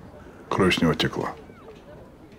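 A man speaks in a low, gruff voice close by.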